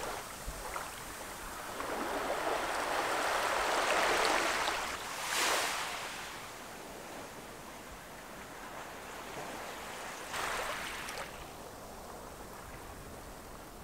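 Small ripples lap gently on a sandy shore.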